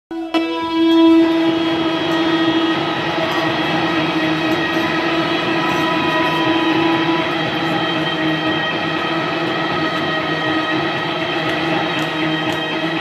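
A live band plays loudly in an echoing room.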